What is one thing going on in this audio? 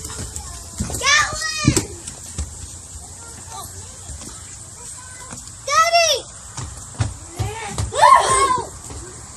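A young boy squeals in a high voice.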